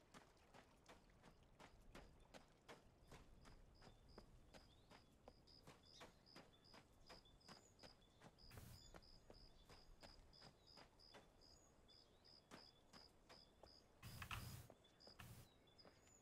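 Footsteps crunch steadily over dirt and grass.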